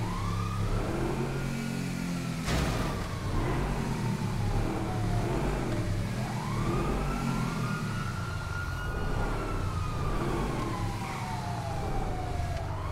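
A sports car engine revs up and down, its pitch rising and falling.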